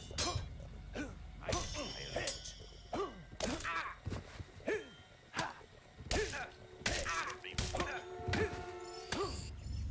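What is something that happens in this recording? Swords clash and strike in a quick fight.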